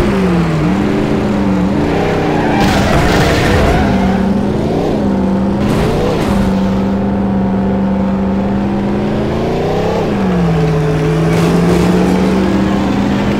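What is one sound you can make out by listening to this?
A car engine roars, rising in pitch and dropping back with each gear change.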